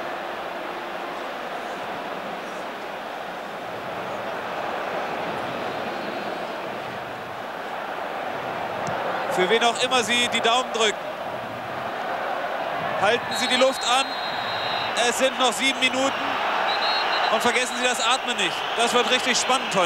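A large crowd roars and murmurs steadily in a stadium.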